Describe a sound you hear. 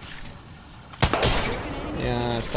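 A sniper rifle fires a single loud shot that echoes.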